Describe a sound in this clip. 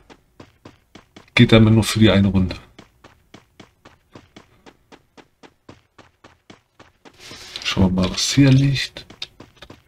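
Footsteps patter quickly and evenly on grass.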